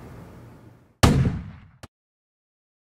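A toy gun fires with a sharp blast.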